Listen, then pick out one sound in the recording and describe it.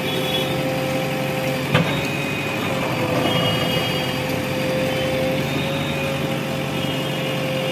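A metal bucket scrapes and clanks against the ground.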